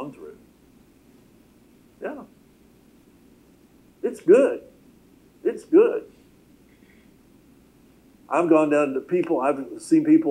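A middle-aged man speaks calmly through a microphone, pausing between phrases.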